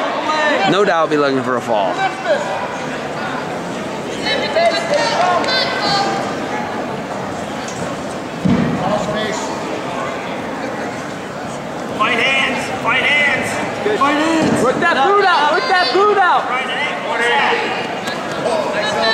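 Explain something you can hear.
A crowd of spectators murmurs in a large echoing gym.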